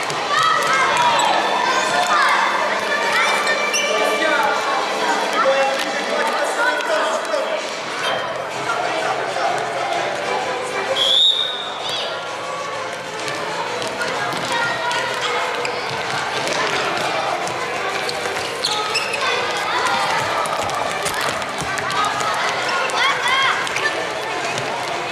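Children shout in a large echoing hall.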